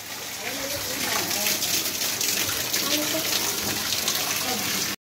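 Heavy rain pours down outdoors with gusting wind.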